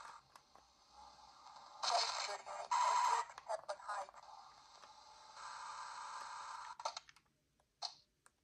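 Plastic buttons click under thumbs.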